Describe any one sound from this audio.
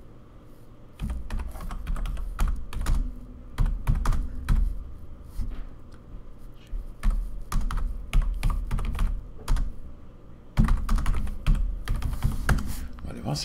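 Keys clatter as a man types quickly on a keyboard.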